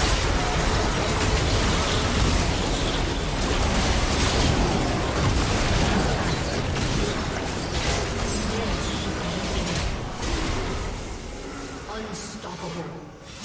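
Game spell effects crackle, whoosh and burst in a fast, busy fight.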